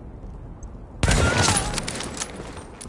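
A rifle fires a single loud shot that rings out and fades.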